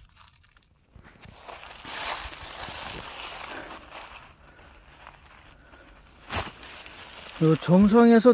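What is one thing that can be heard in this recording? Footsteps crunch and rustle through dry fallen leaves.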